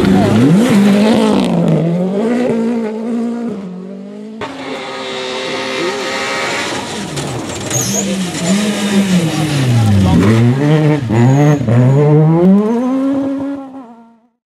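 A rally car engine roars loudly, revving up and down as gears change.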